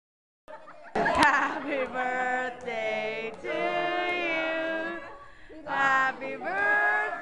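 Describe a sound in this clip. A group of people sings together.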